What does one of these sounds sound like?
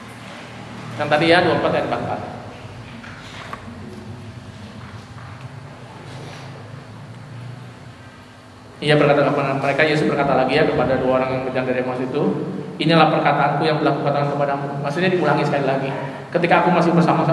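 A middle-aged man speaks calmly into a microphone, heard over a loudspeaker.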